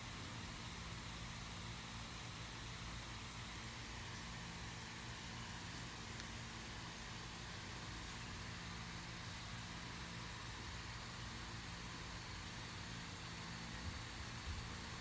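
A marker pen squeaks and scratches softly on paper.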